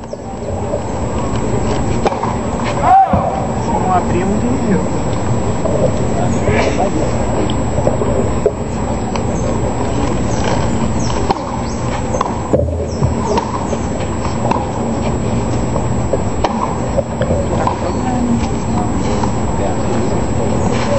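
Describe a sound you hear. A crowd murmurs and chatters steadily in the background.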